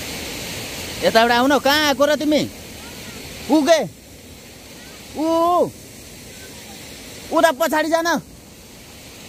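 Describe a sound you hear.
A man calls out loudly in long, drawn-out cries.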